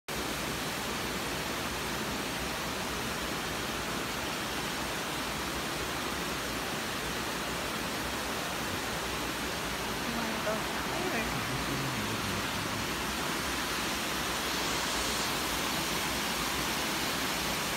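A small waterfall splashes and rushes steadily over rocks outdoors.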